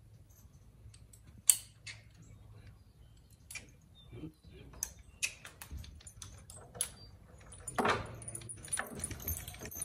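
Metal harness fittings clink and rattle against a mule's bridle.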